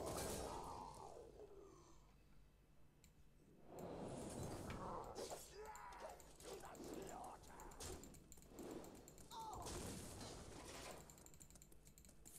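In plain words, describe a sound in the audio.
Video game sound effects whoosh, chime and crash.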